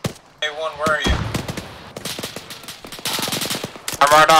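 Gunshots fire in rapid bursts close by.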